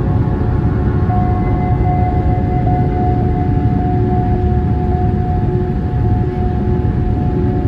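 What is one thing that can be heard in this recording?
Jet engines roar steadily with a low rumble and a constant whine.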